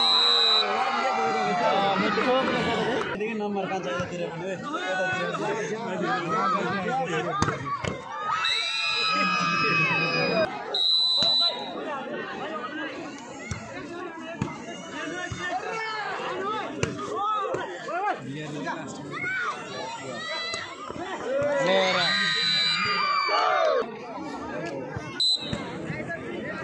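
A referee blows a short, sharp whistle several times.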